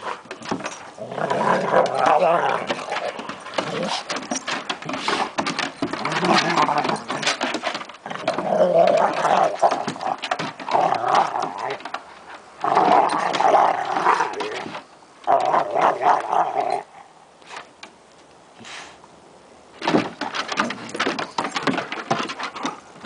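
Two large dogs growl and snarl as they play fight.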